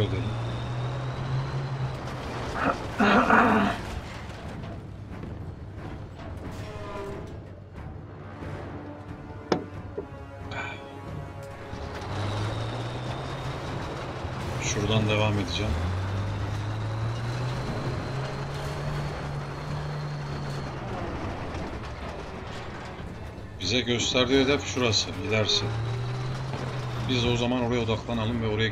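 A heavy tank engine rumbles steadily.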